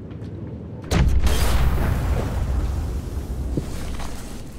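A gunshot bangs loudly and echoes outdoors.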